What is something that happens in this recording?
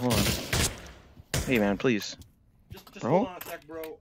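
A rifle magazine clatters out.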